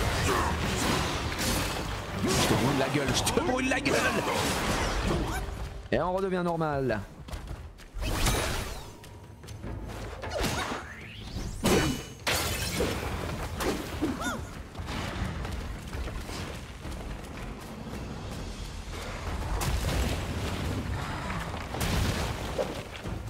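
Blades clash and slash with sharp impacts.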